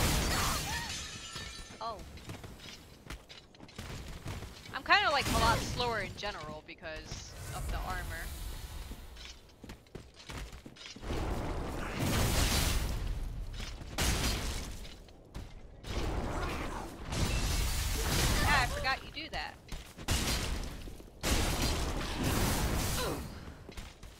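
Ice shatters and crackles loudly.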